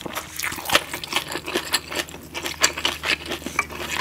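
A spoon scrapes and taps against a glass bowl.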